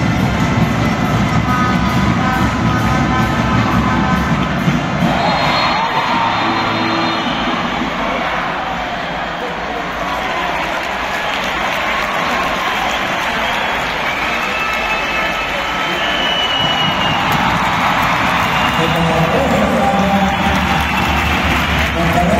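Players' shoes squeak on the court.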